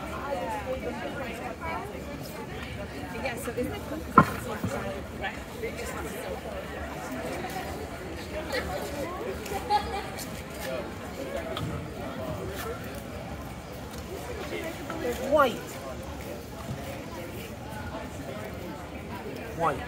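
A crowd of people chatters around outdoors.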